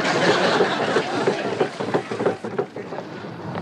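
A crowd of men cheers and whoops loudly outdoors.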